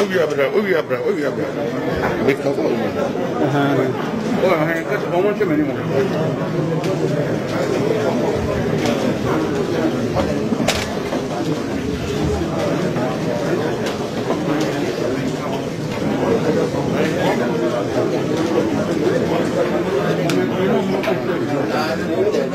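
A crowd of men and women talk and murmur all around.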